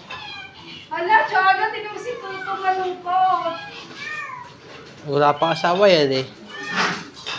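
A young woman talks to the dogs nearby.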